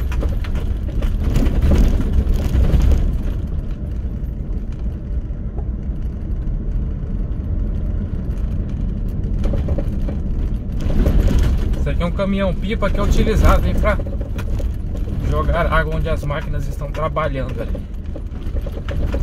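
Tyres rumble steadily over a rough dirt road from inside a moving car.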